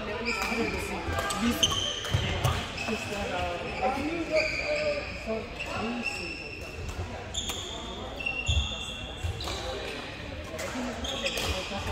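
Shoes squeak sharply on a wooden floor in a large echoing hall.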